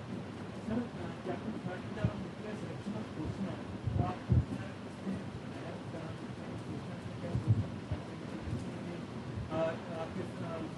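A man speaks to a group.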